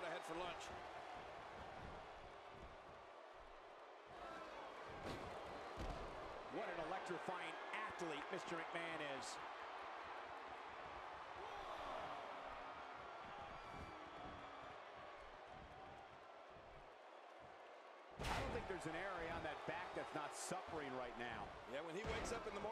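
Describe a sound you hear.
A large crowd cheers and murmurs throughout.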